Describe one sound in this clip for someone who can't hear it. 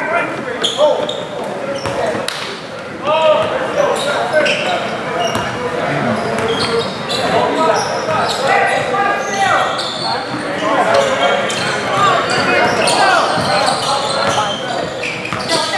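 A crowd of young players and spectators call out and talk in a large echoing gym.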